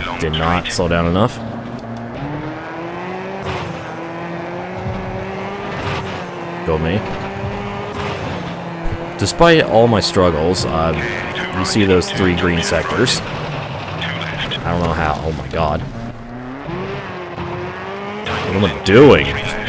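A rally car's engine revs up and down as it races along.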